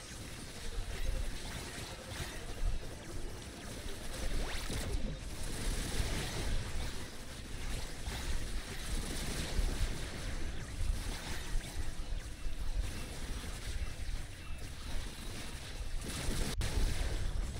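Magic blasts and zaps crackle in quick bursts.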